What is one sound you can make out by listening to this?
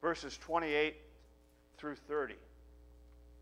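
A man speaks into a microphone in a loud, animated voice.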